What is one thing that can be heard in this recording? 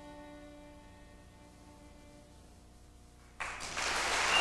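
A violin holds a faint, lingering note.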